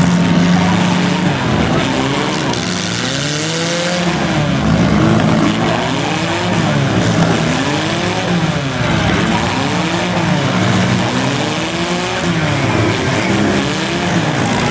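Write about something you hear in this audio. Car engines roar and rev up and down loudly.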